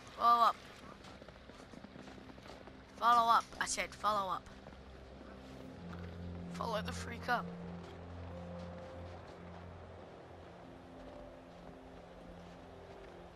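Footsteps crunch slowly on snow.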